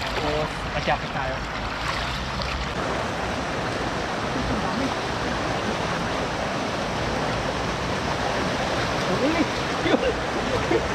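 Rubber boots splash through shallow water.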